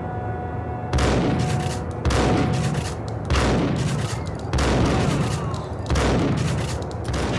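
Shotgun blasts boom one after another and echo.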